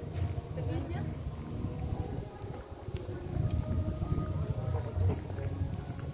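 A young woman talks nearby in a casual way.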